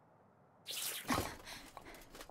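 Boots land heavily on a roof with a thud.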